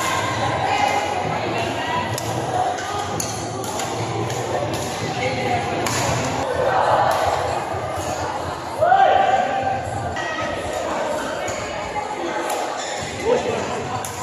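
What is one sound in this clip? Shuttlecocks pop sharply off badminton rackets in a large echoing hall.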